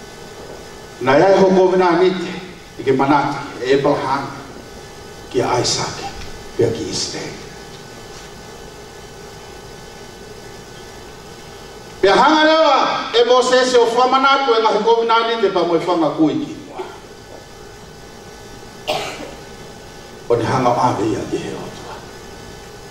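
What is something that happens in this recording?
A man sings with feeling into a microphone, heard through loudspeakers in an echoing hall.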